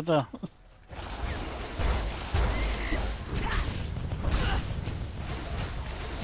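Magic spells crackle and burst during a fight.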